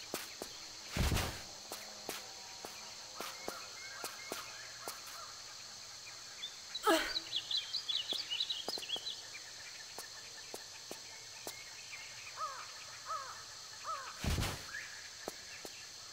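Footsteps tap on rocky ground.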